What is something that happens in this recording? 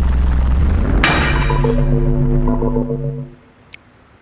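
A short jingle plays as a level fails.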